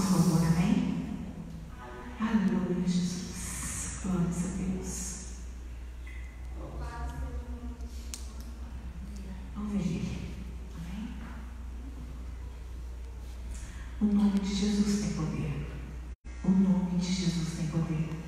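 A woman speaks with feeling through a microphone and loudspeakers in an echoing hall.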